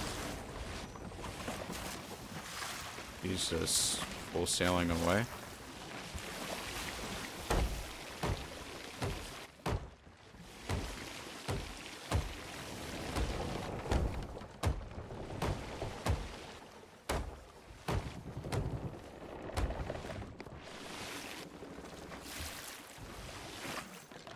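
Water sprays and hisses through holes in a wooden hull.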